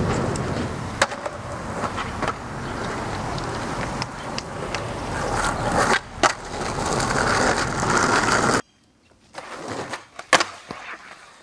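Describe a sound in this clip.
A skateboard deck clacks and slaps down.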